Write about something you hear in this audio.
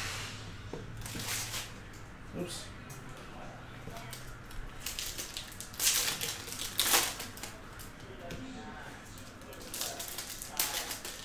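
Foil card packs crinkle and rustle in hands close by.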